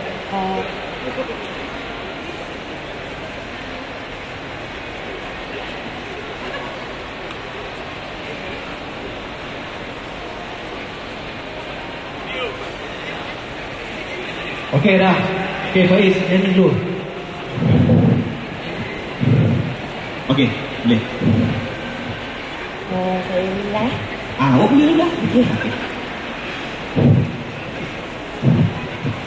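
A crowd murmurs in the background of a large echoing hall.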